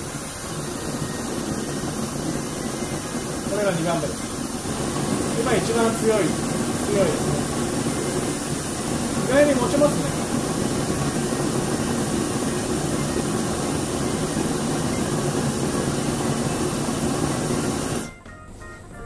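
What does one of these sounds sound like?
A gas burner hisses steadily with a soft roar.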